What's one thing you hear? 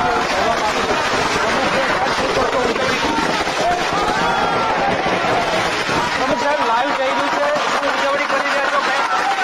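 A crowd cheers and chants loudly outdoors.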